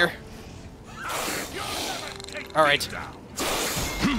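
Magic blasts whoosh and roar.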